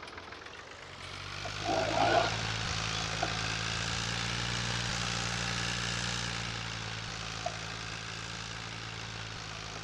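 A tractor engine rumbles steadily and revs up as it drives off.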